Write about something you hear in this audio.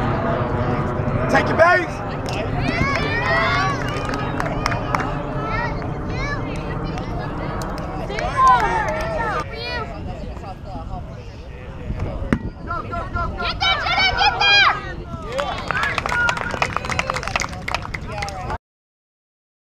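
Young women shout and cheer across an open field.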